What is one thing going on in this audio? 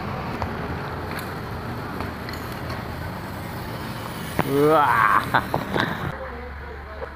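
Bicycle tyres roll over pavement outdoors.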